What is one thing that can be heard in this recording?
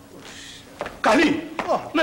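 A man exclaims loudly, close by.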